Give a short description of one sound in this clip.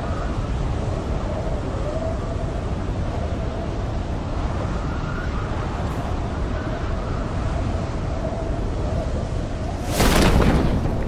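Wind rushes loudly and steadily during a fast freefall.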